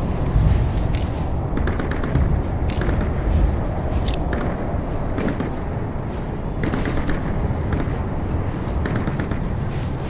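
Soft interface clicks and clacks sound as items are moved around.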